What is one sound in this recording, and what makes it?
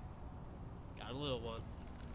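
A man outdoors speaks a few words close by.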